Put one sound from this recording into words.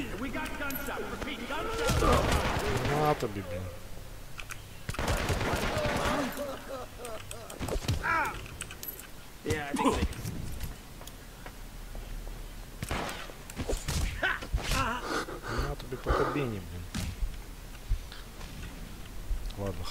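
Fists and bodies thud together in a short scuffle.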